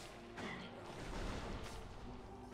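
A blaster fires a loud energy shot.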